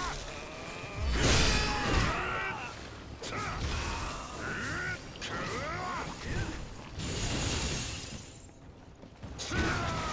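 Magic blasts burst with sharp whooshes.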